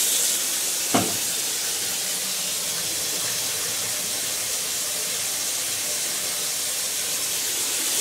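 Water pours from a jug into a coffee maker.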